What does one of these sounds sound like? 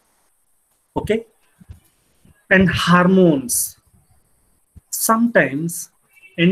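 A young man speaks calmly through a computer microphone.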